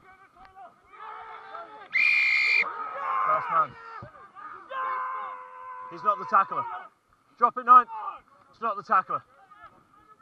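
Men shout to each other outdoors on a field.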